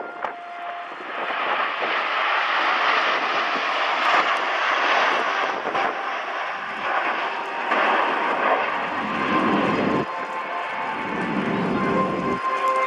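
Jet engines roar overhead in a loud, steady rush that swells as the jets pass.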